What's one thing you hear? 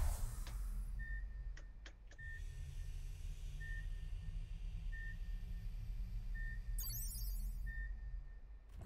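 Short electronic beeps tick off a countdown at a steady pace.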